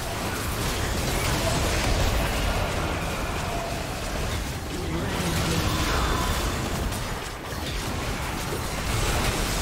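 Spell effects crackle and burst in a video game battle.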